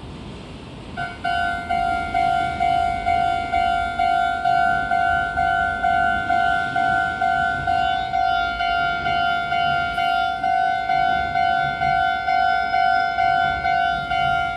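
A railway crossing bell rings loudly in a fast, steady repeating clang.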